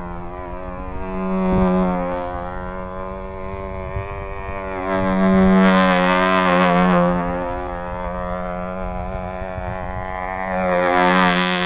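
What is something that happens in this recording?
A control-line model plane's glow engine screams steadily, rising and falling in pitch and loudness as the plane circles.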